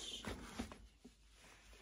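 A suitcase handle rattles and clicks close by.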